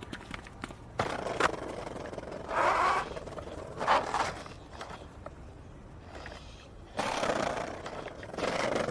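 Skateboard wheels roll and rumble over paving stones.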